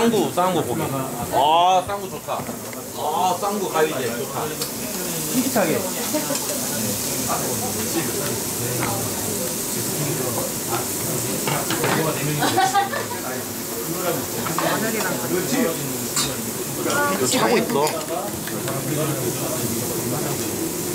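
Meat sizzles on a hot grill.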